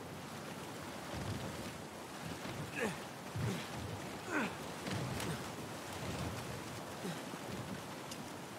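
Footsteps thud on wooden boards and stone.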